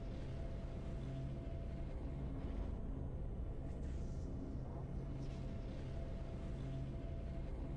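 Triumphant game music plays.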